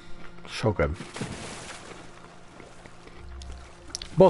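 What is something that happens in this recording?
Water splashes as a figure swims through it.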